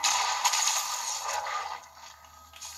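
A pickaxe clangs against metal, heard through small speakers in a room.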